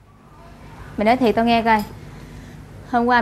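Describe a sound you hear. A young woman speaks loudly and with animation close by.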